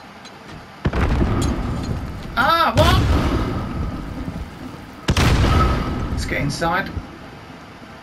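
A loud explosion booms and rumbles nearby.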